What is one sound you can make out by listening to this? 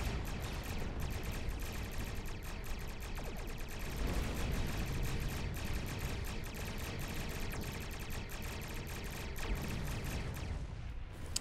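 Laser weapons fire in rapid, crackling bursts.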